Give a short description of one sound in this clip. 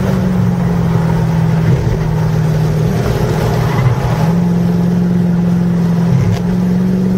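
Tyres hum on the track surface.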